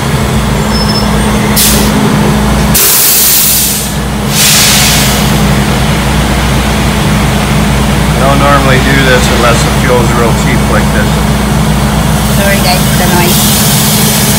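Fuel gushes steadily through a pump nozzle into a car's tank.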